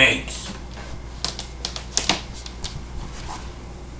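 Footsteps thud on the floor as a man walks away.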